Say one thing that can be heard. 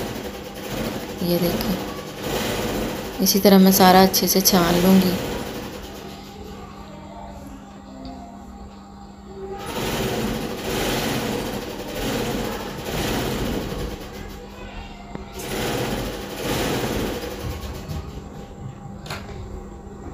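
A metal spoon scrapes against a wire mesh sieve.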